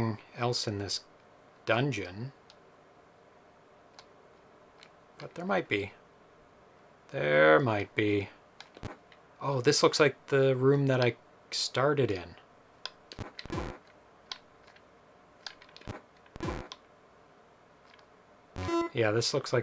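A man talks calmly and closely into a microphone, in short bursts with pauses.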